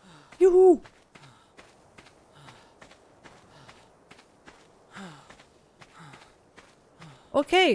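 Footsteps rustle steadily through tall grass and brush.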